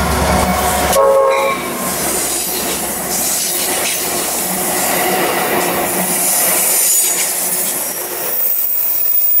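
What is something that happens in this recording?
Steel wheels of passenger cars clatter on the rails as the train rolls by.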